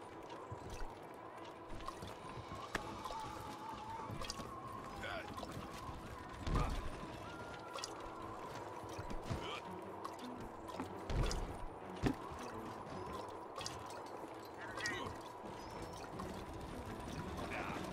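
Footsteps thump on a wooden deck.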